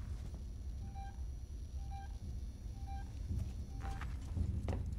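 A motion tracker beeps in short, evenly spaced pips.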